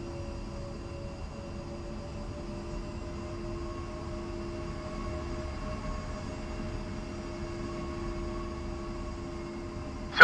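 A jet engine idles with a steady whine and low rumble.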